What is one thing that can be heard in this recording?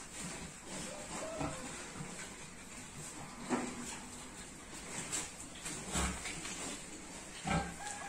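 Pigs grunt and snort close by.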